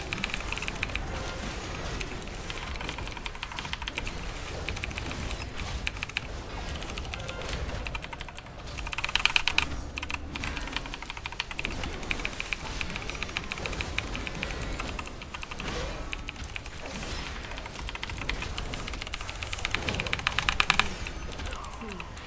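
Magic spells crackle and whoosh in a fast fight.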